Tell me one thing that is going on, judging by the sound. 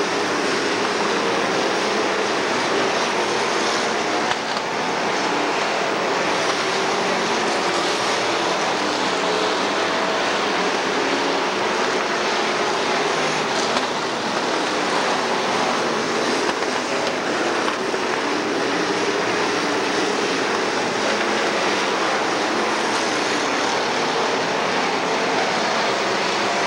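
Race car engines roar loudly and steadily.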